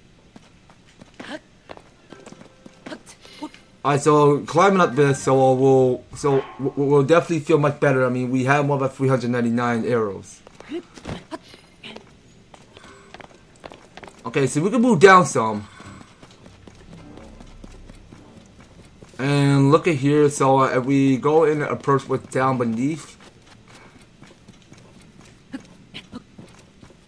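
Footsteps patter quickly on rocky ground.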